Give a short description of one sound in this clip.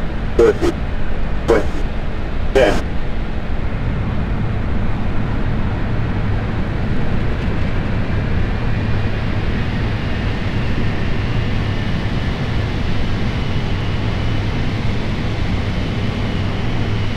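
Jet engines roar steadily as an airliner rolls along.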